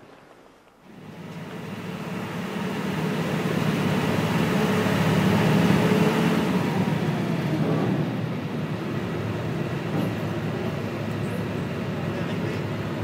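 Motorcycle engines idle with a steady low rumble outdoors.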